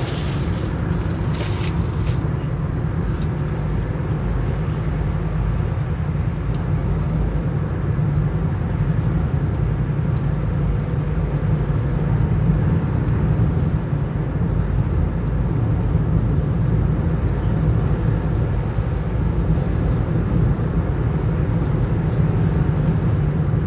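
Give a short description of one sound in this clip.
A car's engine hums steadily as it drives at speed.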